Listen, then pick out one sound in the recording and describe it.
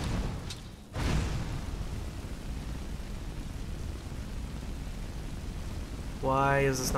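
A fire spell roars steadily.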